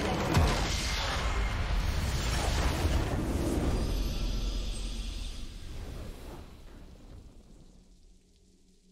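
A huge explosion booms and rumbles, then slowly fades away.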